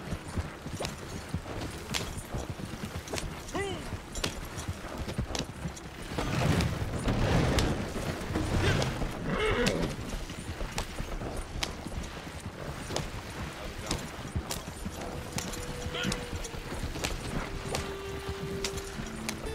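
Wagon wheels rumble and creak over the ground.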